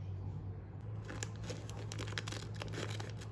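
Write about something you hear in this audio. Scissors snip through a plastic packet.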